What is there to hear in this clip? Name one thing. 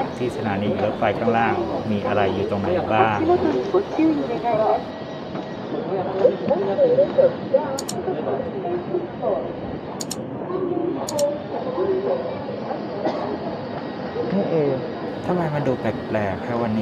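A young man talks with animation close to a microphone.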